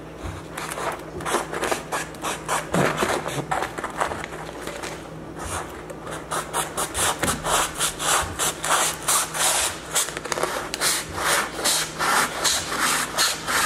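A knife saws rapidly through a cardboard tube.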